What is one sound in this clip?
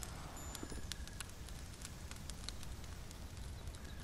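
A fire crackles and pops softly.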